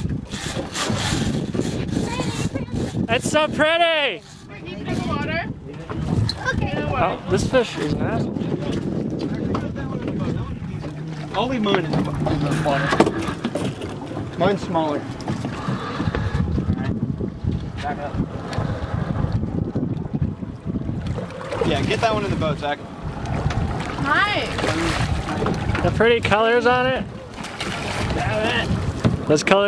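Wind blows and water rushes past a moving boat outdoors.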